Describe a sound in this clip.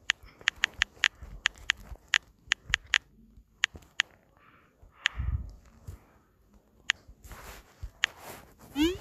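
Phone keyboard taps click quickly and sharply.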